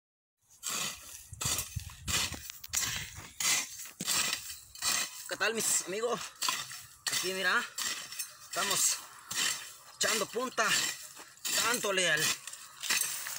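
A hoe chops and scrapes into soil in a steady rhythm.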